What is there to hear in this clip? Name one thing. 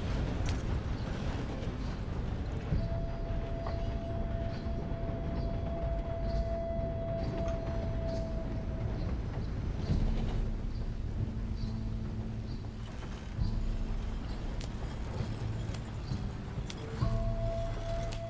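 A horse-drawn wagon rumbles and creaks along a dirt track.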